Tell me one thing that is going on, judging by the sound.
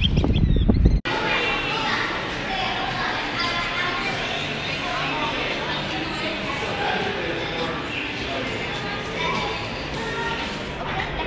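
A crowd of people chatter in an echoing hallway.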